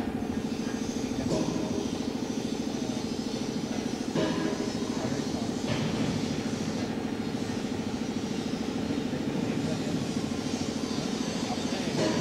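Men talk to each other outdoors at a distance.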